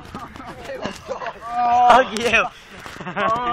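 A boy laughs loudly close by.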